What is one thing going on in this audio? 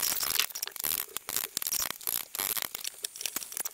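A knife chops rapidly on a cutting board.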